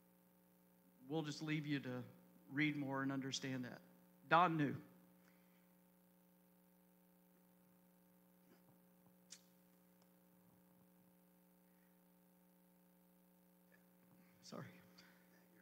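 A middle-aged man speaks calmly into a microphone, heard through loudspeakers in a large room.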